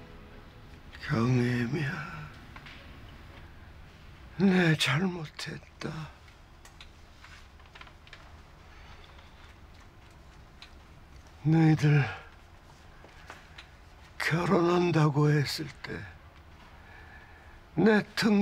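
An elderly man speaks slowly and haltingly, close by.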